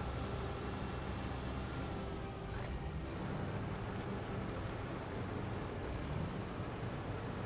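A heavy truck engine rumbles steadily as the truck drives.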